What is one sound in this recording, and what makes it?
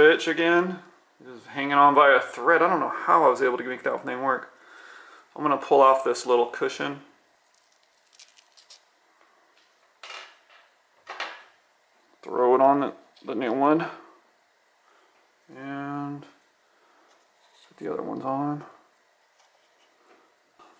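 Small plastic parts click and tap softly as they are handled.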